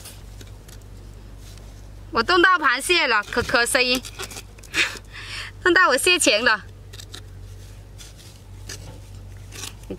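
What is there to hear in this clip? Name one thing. A small trowel scrapes through soil.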